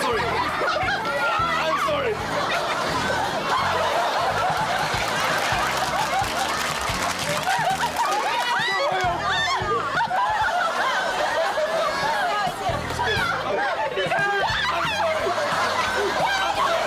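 A young man shouts excitedly.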